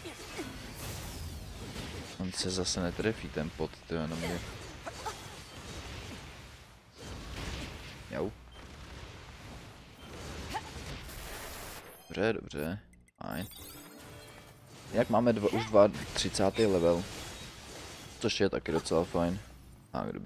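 Blades clash and slash in quick bursts.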